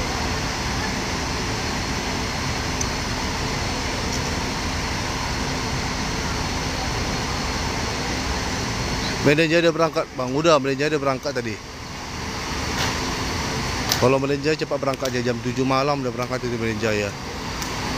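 A large bus engine rumbles steadily nearby.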